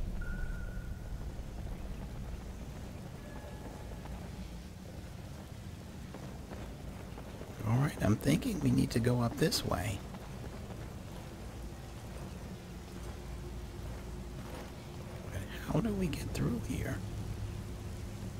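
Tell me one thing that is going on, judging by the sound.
A low magical hum drones steadily throughout.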